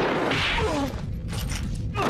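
A woman groans in pain.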